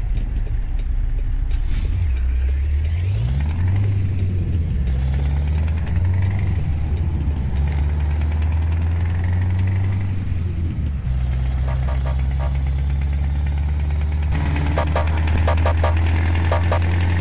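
A truck's diesel engine rumbles steadily, rising and falling in pitch as it shifts gears.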